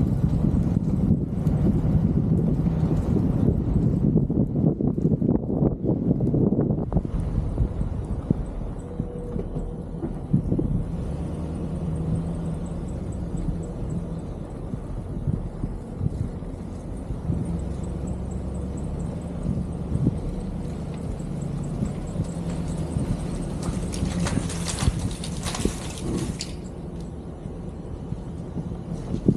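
A vehicle engine rumbles low and steady while driving slowly.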